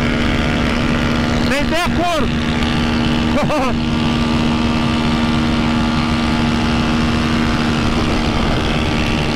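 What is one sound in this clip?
A motorcycle engine drones steadily at high speed.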